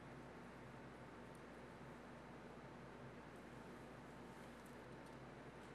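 A metal hook clicks softly as it is turned by hand.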